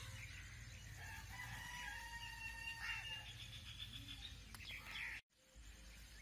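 Birds chirp and twitter.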